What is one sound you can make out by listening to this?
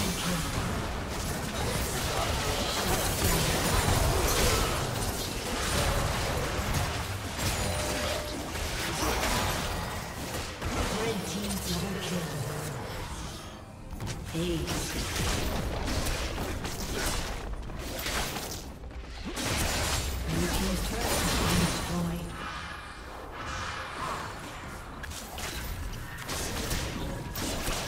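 Spell blasts and explosions from a video game battle crash and boom repeatedly.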